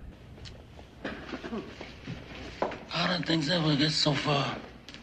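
An elderly man speaks slowly and quietly in a raspy voice.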